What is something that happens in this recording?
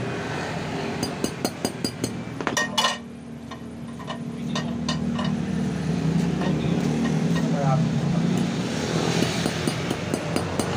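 A small hammer taps lightly on metal in quick strokes.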